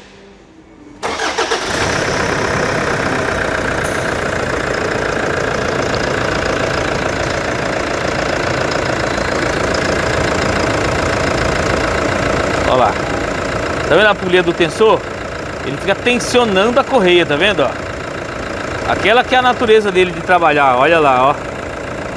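A diesel engine idles with a steady rattling hum.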